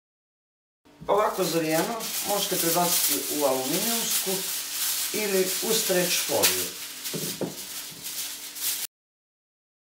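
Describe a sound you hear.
Aluminium foil crinkles and rustles as it is pulled from a roll.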